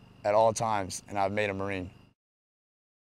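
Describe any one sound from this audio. A man speaks calmly and firmly, close up.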